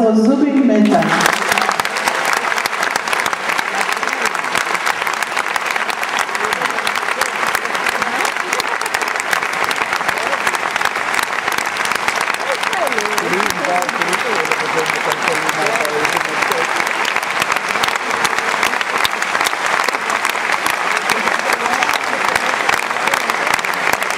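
A large audience applauds loudly and steadily in a big hall.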